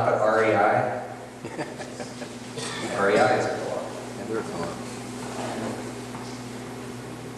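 A man speaks calmly into a microphone, heard through a loudspeaker in an echoing room.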